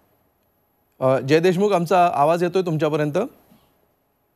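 A man speaks clearly and steadily over a microphone.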